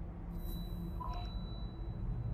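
A short electronic chime sounds as a menu choice is made.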